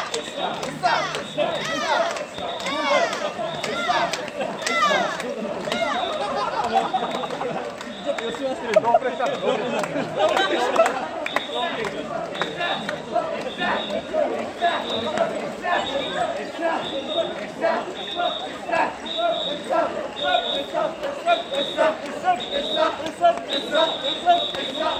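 A crowd of men and women chant loudly in rhythm, close by.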